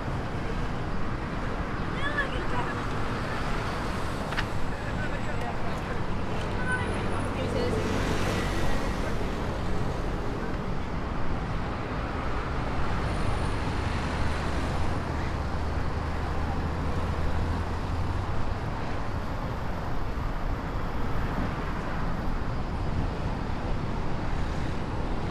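Traffic rumbles steadily on a nearby road outdoors.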